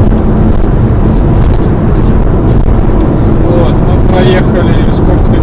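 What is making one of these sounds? A car's engine hums and its tyres roar steadily on the road, heard from inside the car.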